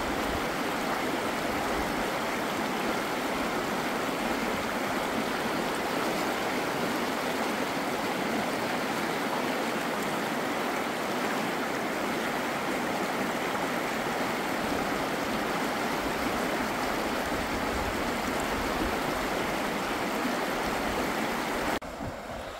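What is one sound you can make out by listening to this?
Water splashes around a man wading in the river.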